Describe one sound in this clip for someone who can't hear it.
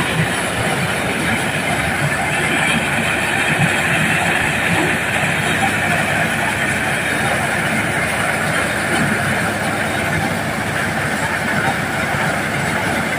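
Grain pours and hisses out of a threshing machine.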